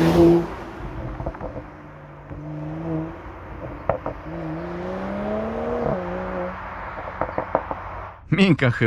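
A car exhaust pops and crackles as the car shifts gears and drives away.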